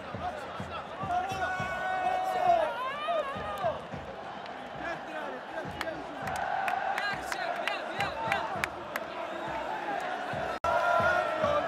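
Young men shout and call out to each other nearby.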